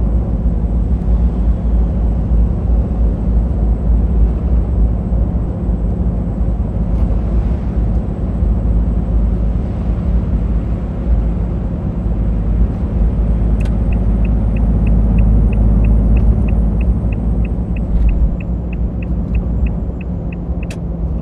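A truck engine drones steadily while driving on a road.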